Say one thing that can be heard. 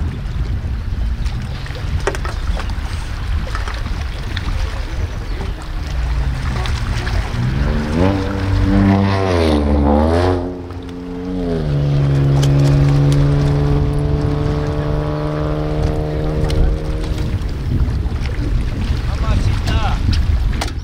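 Wind blows steadily outdoors and rumbles across the microphone.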